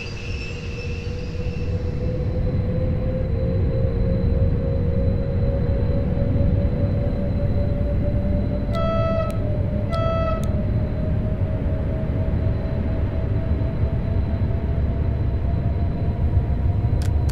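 A train rumbles along the tracks, steadily gathering speed.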